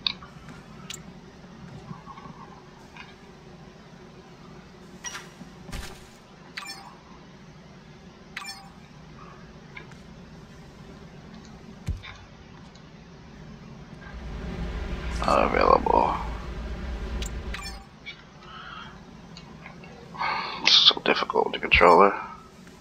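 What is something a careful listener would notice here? Soft interface clicks sound as menu items are selected.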